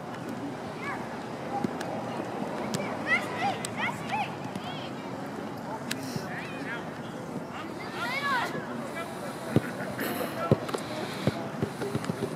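A soccer ball thumps as it is kicked.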